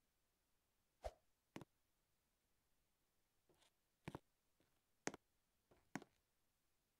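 Light footsteps patter at an uneven pace.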